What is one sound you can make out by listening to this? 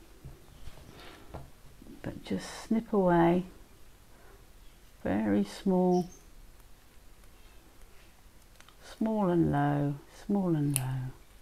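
Small scissors snip softly through thick fabric.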